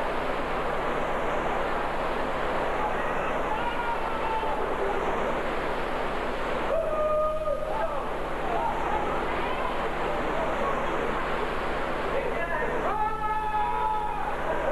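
Water rushes and churns loudly over a weir.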